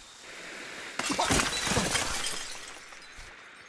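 Glass shatters as a window is broken through.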